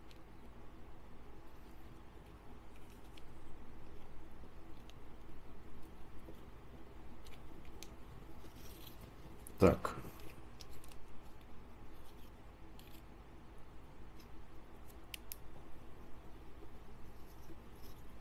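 Small plastic and metal parts click and rattle in handling.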